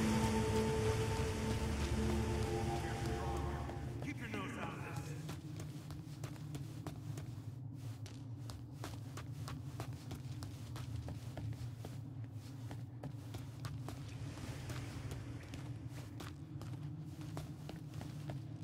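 Quick footsteps run on stone.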